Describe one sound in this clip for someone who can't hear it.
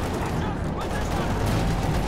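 Rifles fire in short bursts.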